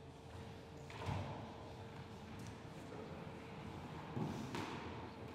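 A squash ball bounces on a wooden floor.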